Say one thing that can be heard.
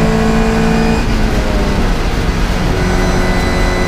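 A classic Mini race car's engine dips in pitch through a gear change, then climbs again.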